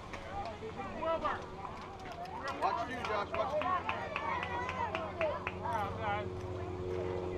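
Children shout and cheer across an open field outdoors.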